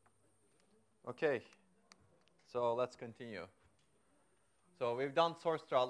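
A man lectures through a microphone in a large room, speaking in short bursts.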